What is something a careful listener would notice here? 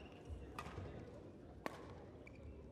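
A shuttlecock is struck sharply by rackets.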